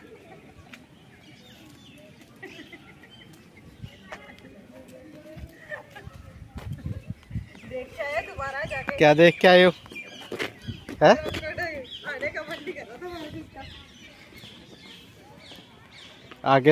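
Small footsteps patter on a paved path.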